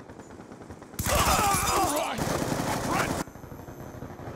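An automatic rifle fires bursts in a video game.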